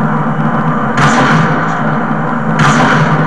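Rifle shots ring out in short, sharp bursts.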